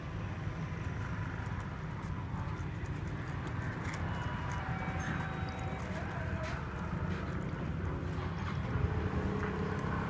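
Liquid pours and splashes over ice in a cup.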